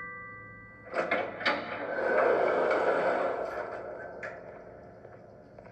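A sliding door whooshes open in a video game.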